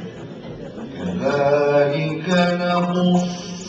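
A man chants in a melodic voice through a microphone, in an echoing room.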